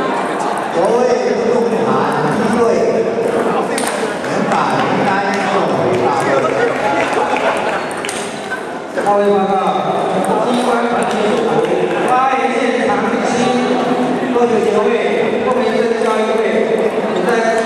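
Table tennis balls click against paddles and tables.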